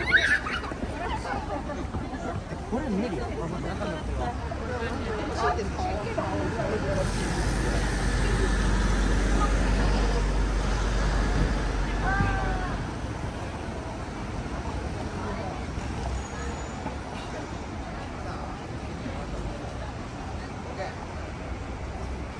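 A crowd of pedestrians talks and murmurs close by outdoors.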